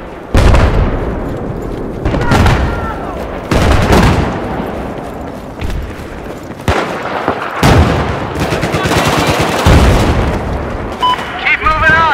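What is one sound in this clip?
Explosions boom heavily in the distance, again and again.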